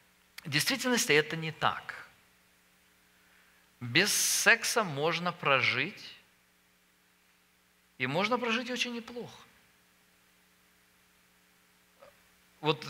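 A middle-aged man speaks calmly and clearly through a headset microphone, in short phrases with pauses.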